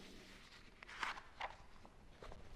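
Pages rustle as a man handles a book.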